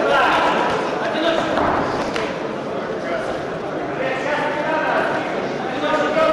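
Boxing gloves thud against a boxer's body and headguard.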